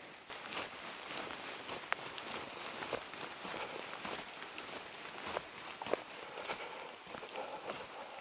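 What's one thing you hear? Footsteps crunch on a dirt trail and fade away.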